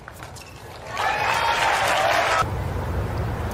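A crowd of spectators applauds and cheers.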